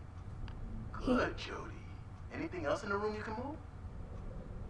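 A woman speaks calmly and encouragingly, close by.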